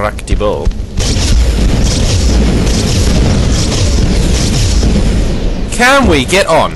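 An energy weapon charges up with a loud electric crackle in a video game.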